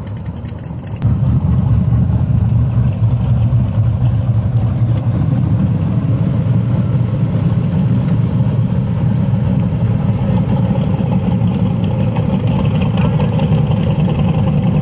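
A V8 muscle car idles close by with a deep rumble.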